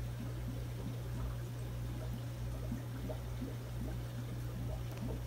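Air bubbles gurgle and pop steadily in water.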